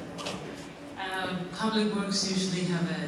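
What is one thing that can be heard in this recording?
A woman speaks into a microphone through loudspeakers.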